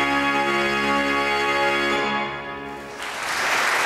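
A pipe organ plays sustained chords in a large echoing space.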